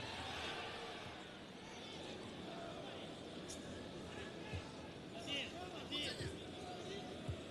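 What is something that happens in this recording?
A large stadium crowd murmurs and chants steadily.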